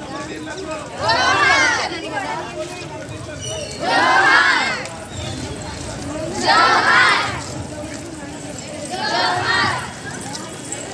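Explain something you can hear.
A crowd of women chants slogans together in loud bursts outdoors.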